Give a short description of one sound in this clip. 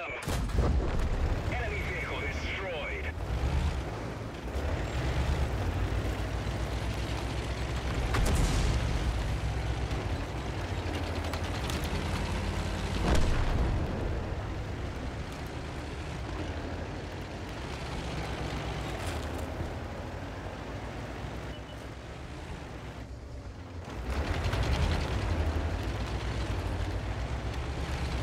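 A tank engine rumbles low as the tank drives.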